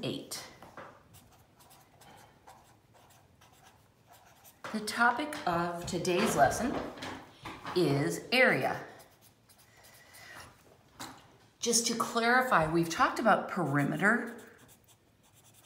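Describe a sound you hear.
A felt-tip marker scratches softly across paper.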